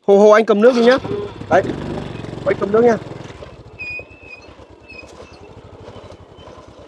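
A motorbike engine rumbles and pulls away, fading.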